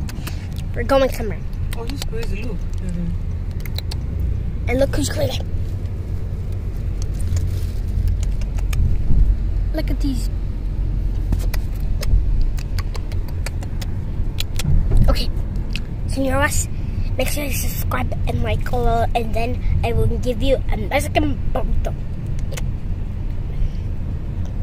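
A car rumbles low and steadily as it drives.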